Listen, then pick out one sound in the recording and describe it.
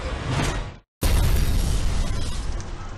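Debris and rubble clatter onto the ground.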